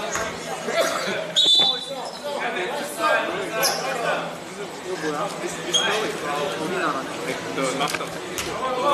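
Many young voices talk and shout in an echoing gym.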